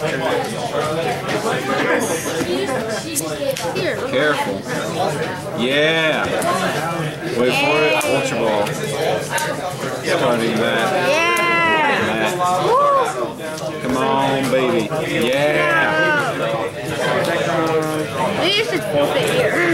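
Playing cards are shuffled by hand with soft rustling.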